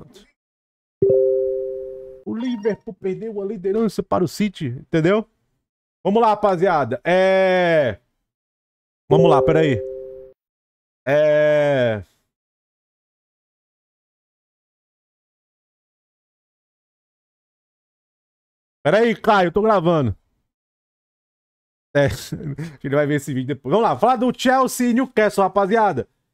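A young man talks with animation into a close microphone, in bursts with long pauses.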